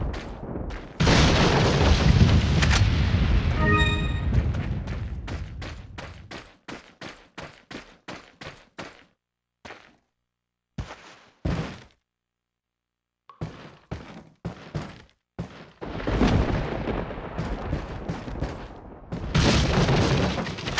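A rifle fires loud shots that echo.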